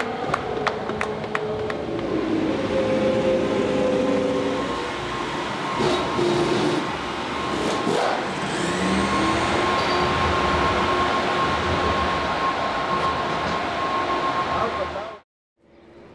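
A crowd roars in a large echoing space.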